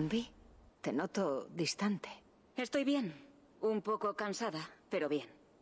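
A woman answers calmly.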